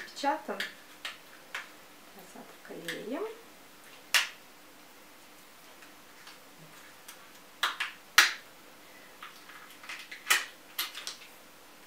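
Small plastic bottles click and tap close by.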